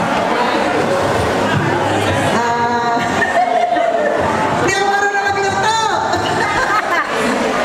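An elderly woman speaks into a microphone, heard through a loudspeaker.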